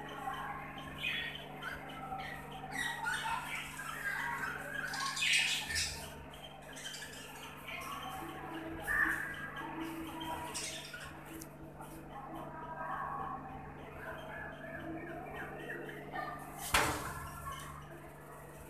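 A flock of budgerigars chirps and warbles.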